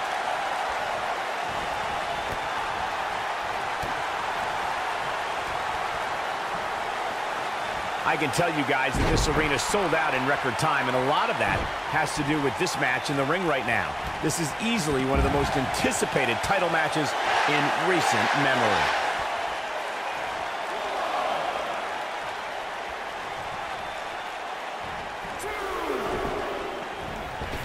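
A large crowd cheers in an arena.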